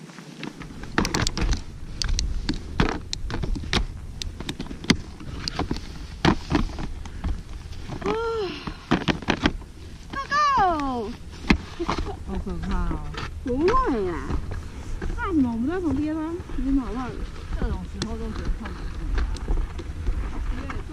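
Skis scrape and crunch on packed snow.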